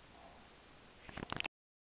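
A hand bumps and rubs against the microphone up close.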